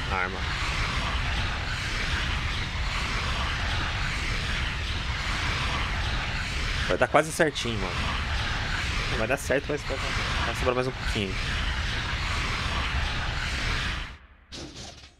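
A game's upgrade sound whirs steadily, then stops.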